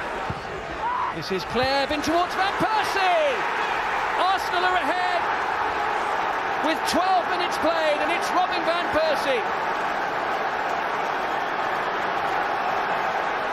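A crowd cheers loudly after a goal.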